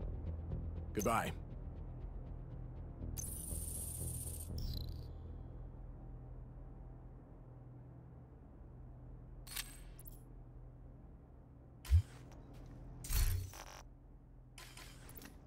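Menu interface sounds click and whoosh as options change.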